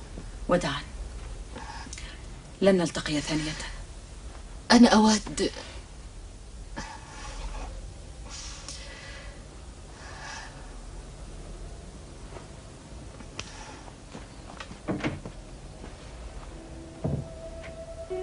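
A woman speaks quietly and emotionally nearby.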